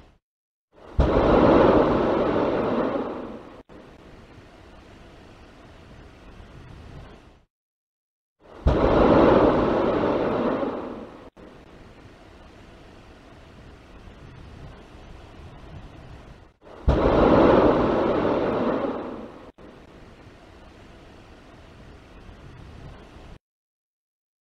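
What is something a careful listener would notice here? Rocket engines fire with a sudden, deep crackling roar that fades to a low rumble, again and again.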